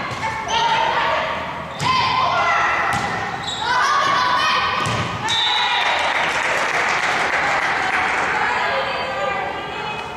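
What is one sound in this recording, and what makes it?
Girls on a team shout and cheer loudly.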